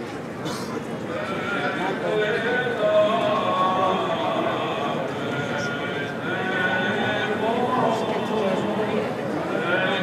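An elderly man chants through a microphone, in a reverberant hall.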